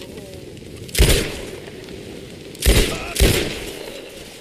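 Gunshots ring out loudly, one after another.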